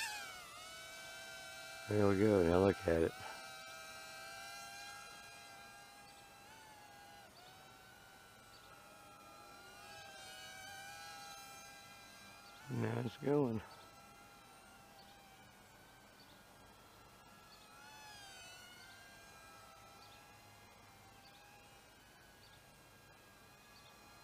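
A small drone whirs with a high whine that rises and falls in pitch.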